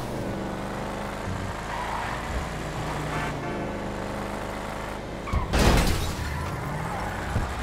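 A sports car engine revs.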